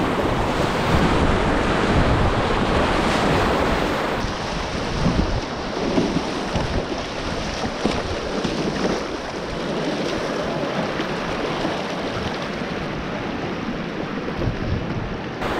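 A paddle splashes in the water.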